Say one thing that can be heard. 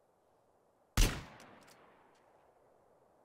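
A rifle fires a single loud shot that echoes away.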